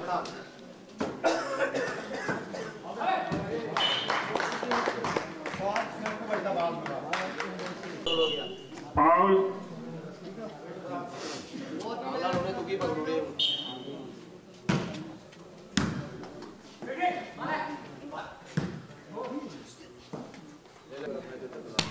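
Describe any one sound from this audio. A volleyball thumps as players hit it.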